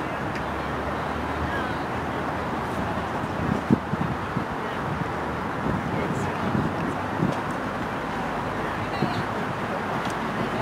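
Wind blows and buffets outdoors.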